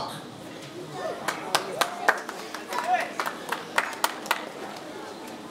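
A few people in an audience clap.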